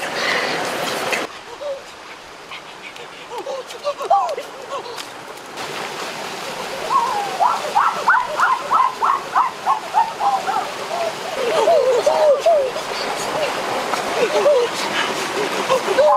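A stream of water trickles and splashes over rocks.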